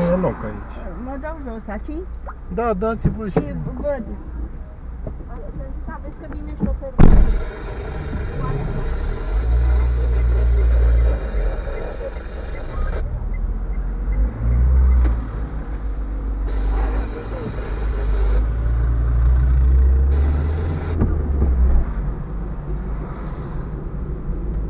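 A car engine hums and rumbles as the car drives along a street.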